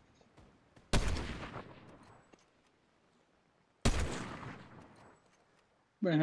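Loud gunshots boom, each fading with a long rumble.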